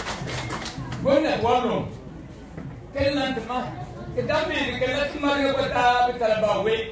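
An elderly man speaks with animation into a microphone through a loudspeaker.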